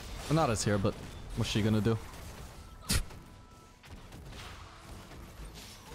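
Magic spell effects burst and crackle during a fight.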